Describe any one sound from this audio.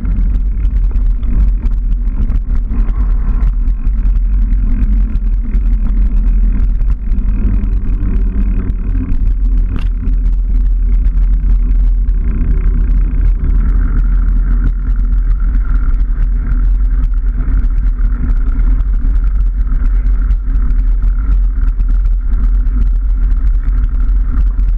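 Bicycle tyres rumble and rattle over a rough path.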